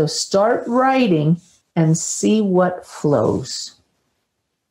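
A middle-aged woman speaks slowly and calmly through a microphone, then goes quiet with long pauses.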